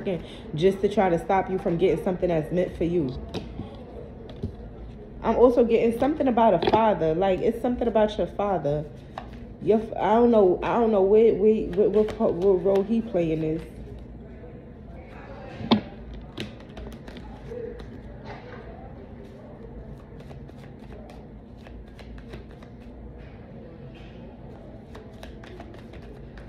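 Paper banknotes rustle and flick as they are counted.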